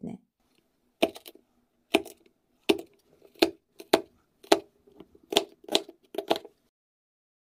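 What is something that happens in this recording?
A knife chops through beetroot and taps on a wooden board.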